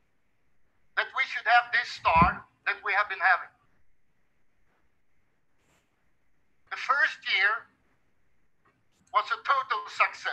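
A middle-aged man speaks with emphasis through a headset microphone, in pauses.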